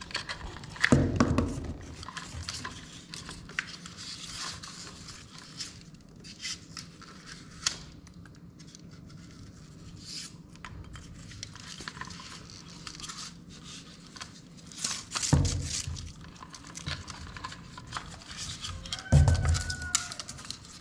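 Stiff wires rustle and scrape as hands handle them.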